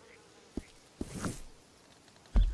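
A horse's hooves thud on grass.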